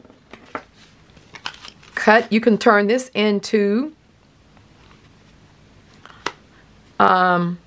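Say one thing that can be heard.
Paper rustles and taps softly as it is handled.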